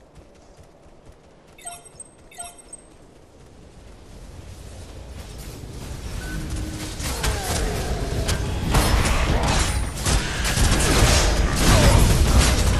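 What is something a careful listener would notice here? Weapons clash and magic blasts crackle in a fast fight.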